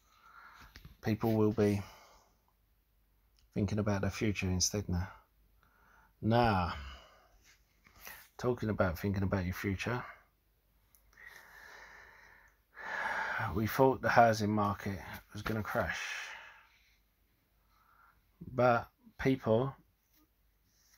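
A middle-aged man talks calmly and close to a microphone, in bursts with pauses.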